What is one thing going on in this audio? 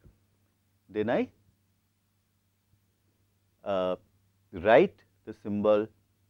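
An older man speaks slowly and deliberately through a clip-on microphone, with long pauses.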